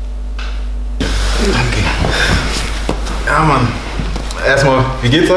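Several men laugh together loudly.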